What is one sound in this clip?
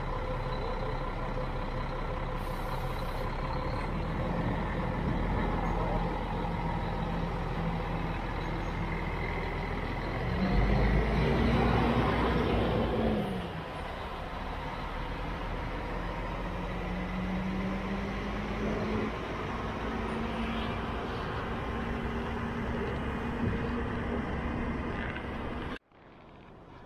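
A bus engine rumbles steadily nearby.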